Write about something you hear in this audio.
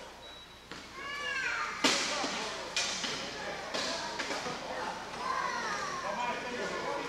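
Wheelchair tyres squeak sharply on a hard floor in a large echoing hall.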